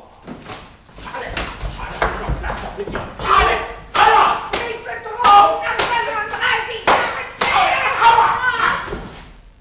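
A man shouts with animation in an echoing hall.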